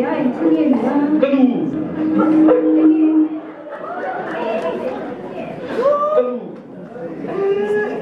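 A young man speaks into a microphone over loudspeakers.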